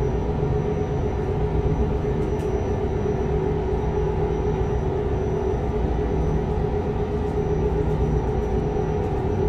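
Tyres roll over a motorway with a steady rumble.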